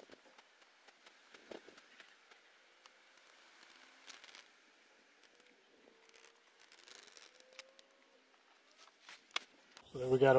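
A sheet of paper rustles as hands smooth and roll it.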